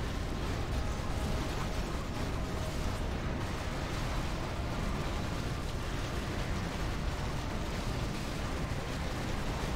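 Clashing battle sounds and magic blasts crackle continuously.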